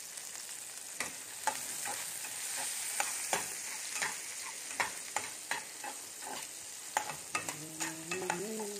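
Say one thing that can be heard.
A metal spatula scrapes and clanks against a pan.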